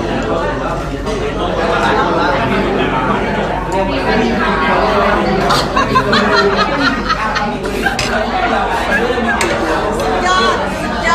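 Several people chatter and laugh close by.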